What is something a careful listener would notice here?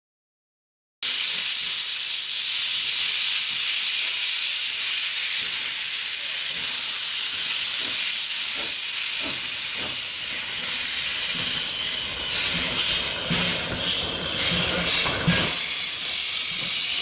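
A steam locomotive hisses loudly as steam blasts from its cylinders.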